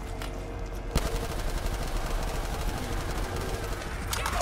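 Gunfire from a game rattles rapidly.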